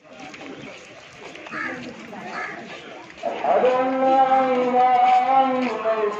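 A crowd of people chatters in a busy street.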